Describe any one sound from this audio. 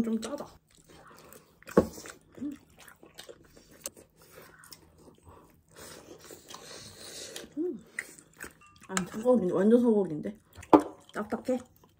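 A young man chews food noisily up close.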